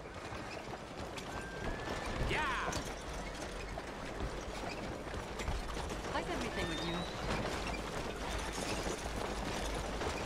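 Horse hooves clop on a street nearby.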